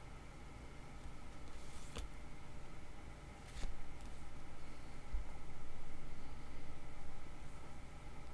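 Playing cards slide and rustle softly on a tabletop.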